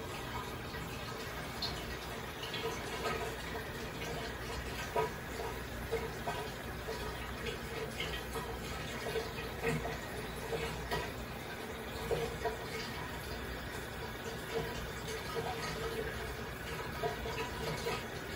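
An aquarium pump hums steadily.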